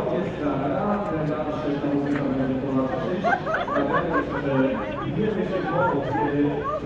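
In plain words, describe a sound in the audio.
A large crowd chatters and murmurs outdoors.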